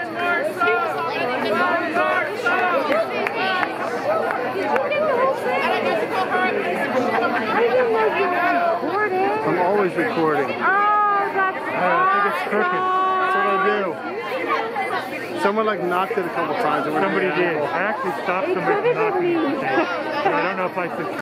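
A crowd of men and women chatters and laughs nearby outdoors.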